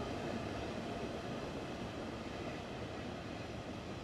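An electric train's motor hums as the train starts to move.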